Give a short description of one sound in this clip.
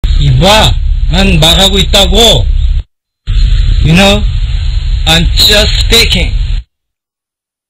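A man speaks with animation, close up.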